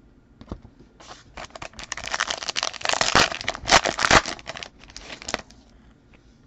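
A foil pack crinkles and rustles in hands.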